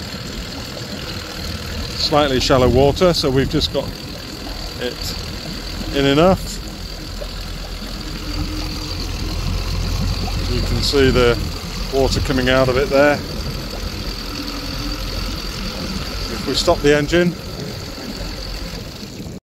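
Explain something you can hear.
Water churns and splashes at the back of a boat.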